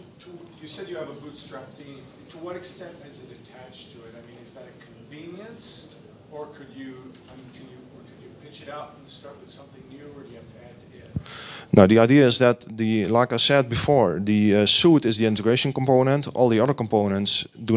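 A man speaks calmly into a microphone through loudspeakers in a large echoing hall.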